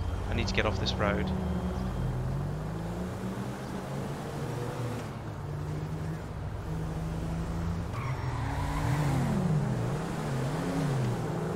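A car engine hums steadily and shifts pitch as the car drives along.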